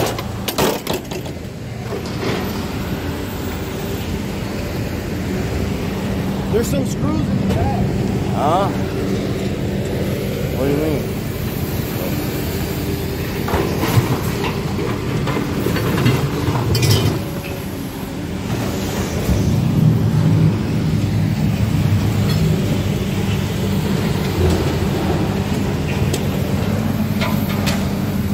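A heavy diesel engine rumbles steadily nearby.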